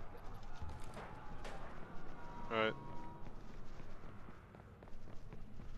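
Footsteps run quickly on pavement.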